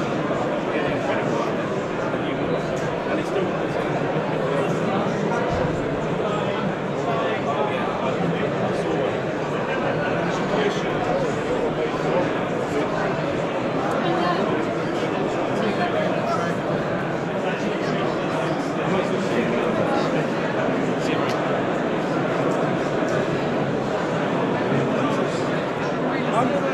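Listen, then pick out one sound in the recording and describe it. A crowd of people chatters steadily in a large echoing hall.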